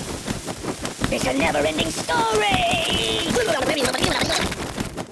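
Pigeons coo and chirp in a noisy flock.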